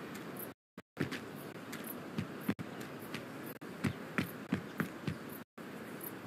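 Quick footsteps slap on pavement.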